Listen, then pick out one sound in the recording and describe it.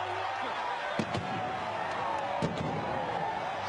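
Fans clap and slap hands.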